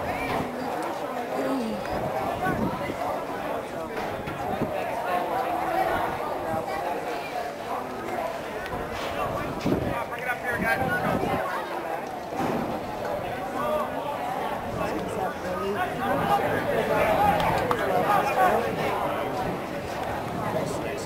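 A crowd of young players chatters and shouts outdoors.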